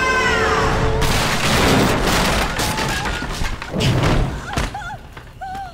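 A loud blast roars and crashes.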